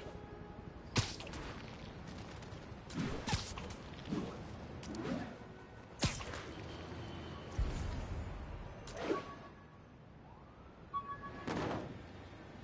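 Webs shoot out with sharp whooshes.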